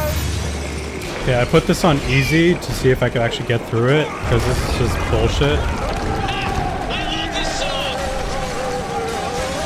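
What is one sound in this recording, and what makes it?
Gunfire rattles in a video game.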